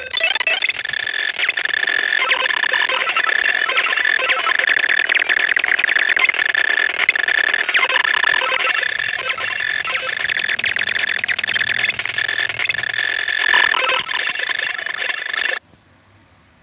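Electronic slot machine game music and beeps play rapidly.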